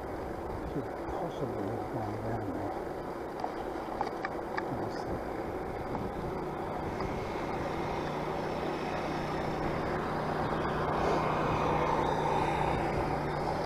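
A vehicle drives along a rough country road, with a steady rumble.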